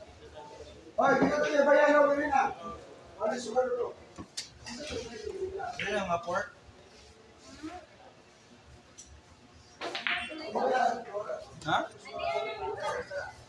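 Men talk and call out nearby in a room with some echo.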